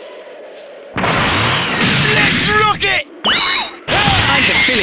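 A crackling energy blast charges up with a rising hum.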